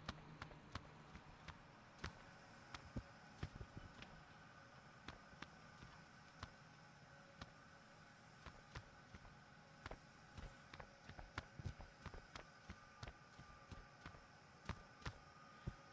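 Light footsteps thud and tap on a hard floor.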